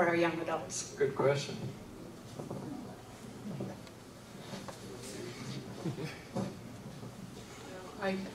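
An elderly man speaks into a microphone through loudspeakers in a large room.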